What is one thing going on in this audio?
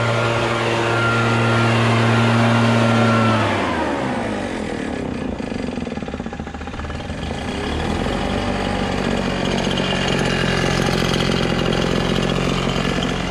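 A leaf blower engine roars close by, winds down to a low idle, then revs up again.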